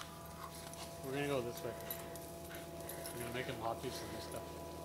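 A dog whines up close.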